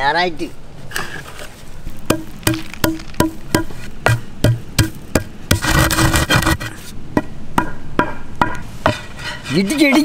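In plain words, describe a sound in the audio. A wooden pestle pounds spices in a stone mortar with dull thuds.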